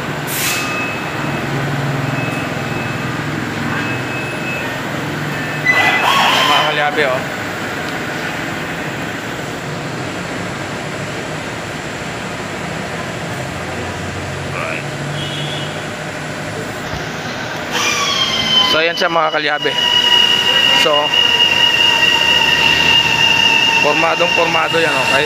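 A van engine idles and rumbles low as the van creeps forward.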